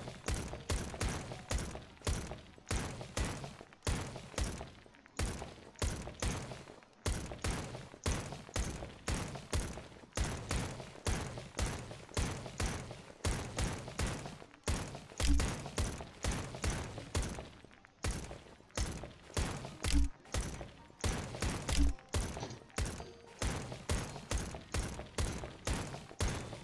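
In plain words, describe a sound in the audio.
A suppressed pistol fires in quick succession in a video game.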